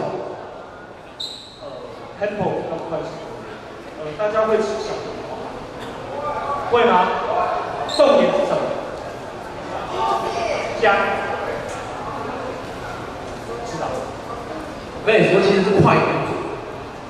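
Two young men talk with animation through microphones over loudspeakers, echoing in a large hall.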